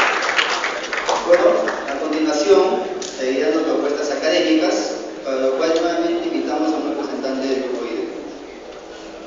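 A man speaks calmly through a loudspeaker in an echoing hall.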